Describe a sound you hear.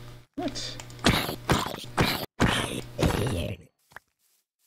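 A sword strikes a zombie with heavy hits.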